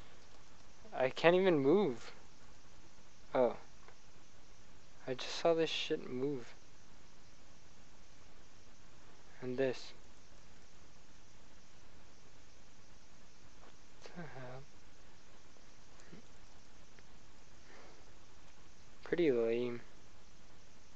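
A young man speaks in short bursts into a headset microphone, close up.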